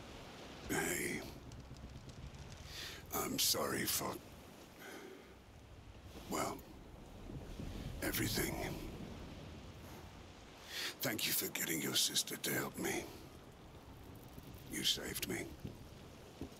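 A man speaks weakly and hoarsely, close by.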